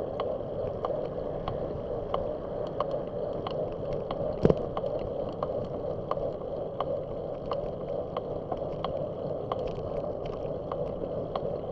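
Wind rushes steadily past while riding along a road.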